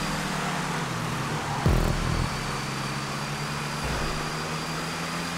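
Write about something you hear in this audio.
Tyres hum on the track.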